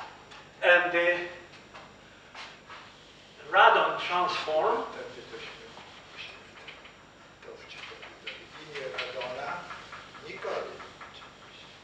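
An elderly man speaks calmly in an echoing room.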